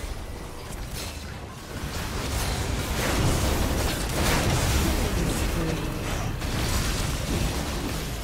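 Spell effects whoosh and crackle in a video game battle.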